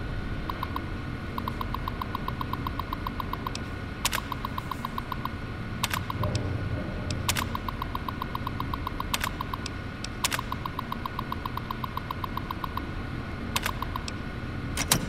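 A computer terminal ticks rapidly as text prints out, in short bursts.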